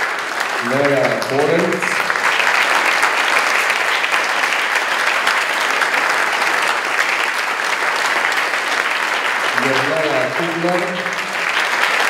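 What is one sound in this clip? A man speaks briefly into a microphone over a loudspeaker.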